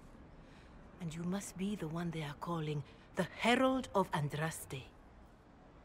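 A young woman speaks in reply, calmly.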